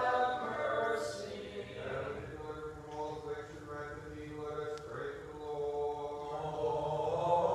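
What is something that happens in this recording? A man chants in a slow, sustained voice in an echoing hall.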